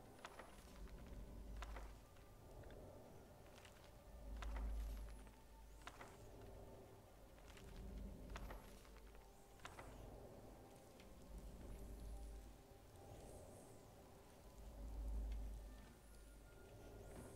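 A torch flame crackles softly close by.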